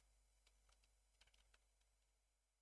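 Blocks click softly as they are placed.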